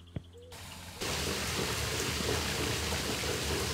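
Water rushes loudly from a shower head.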